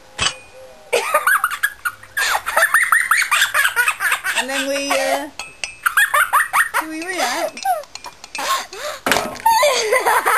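Women laugh loudly nearby.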